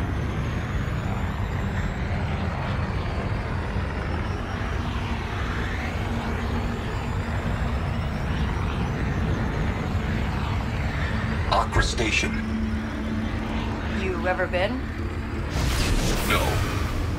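A spaceship engine roars steadily with a deep rumble.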